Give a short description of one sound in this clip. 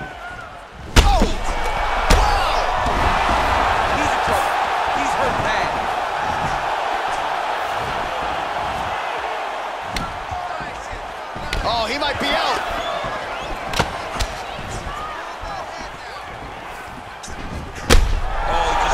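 Heavy punches land with loud thuds.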